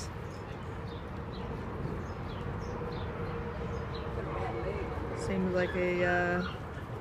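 A dog's paws pad across artificial turf.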